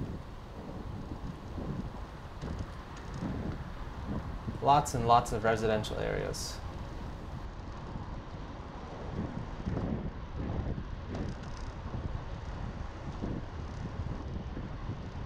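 Bicycle tyres roll steadily over asphalt.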